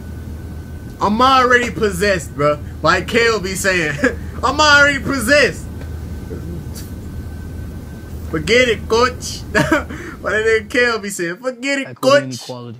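A young man laughs close to a microphone.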